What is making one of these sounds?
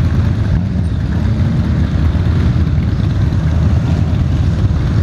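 Several motorcycle engines rumble close by.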